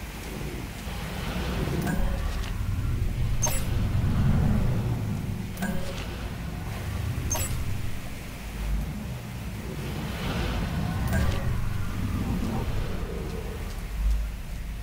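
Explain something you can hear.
Water pours and splashes steadily.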